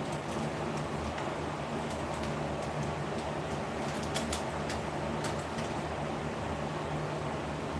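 An electric lamp buzzes with a steady low hum.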